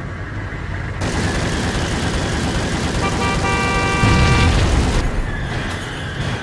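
A car explodes with a loud, roaring blast.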